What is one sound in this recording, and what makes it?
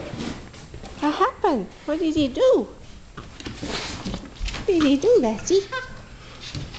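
A dog squeezes a squeaky toy, making it squeal.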